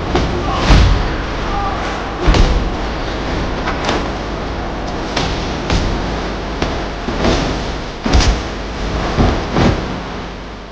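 Blows and thuds of hand-to-hand fighting land again and again.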